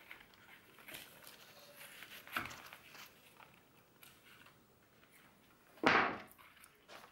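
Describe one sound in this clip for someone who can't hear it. Scissors snip plant stems.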